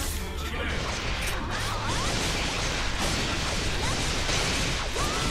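Energy blasts crackle and whoosh during a fight.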